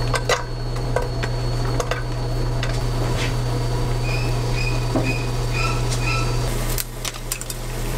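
Oil and garlic sizzle in a hot pan.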